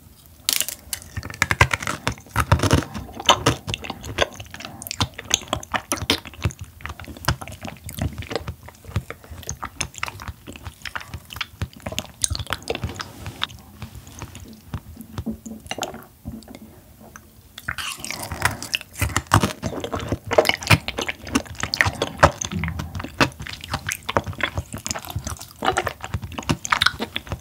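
A young woman chews soft food wetly close to a microphone.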